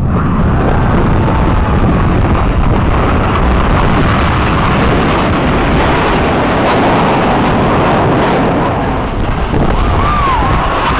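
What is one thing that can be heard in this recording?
Jet engines roar overhead and slowly fade.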